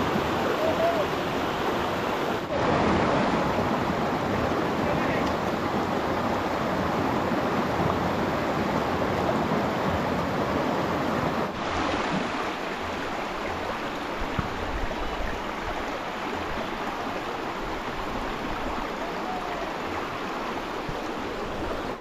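A shallow river rushes and gurgles over rocks.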